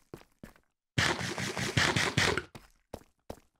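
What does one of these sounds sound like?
Someone chews and munches food quickly.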